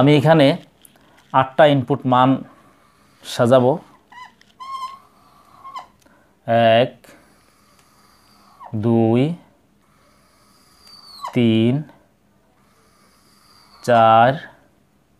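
An elderly man speaks calmly, close by, in short phrases.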